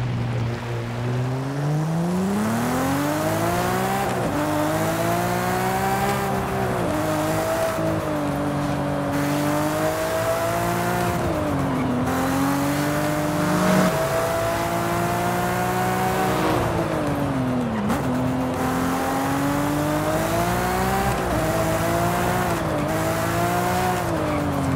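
A car engine revs hard, rising in pitch and dropping sharply with each gear change.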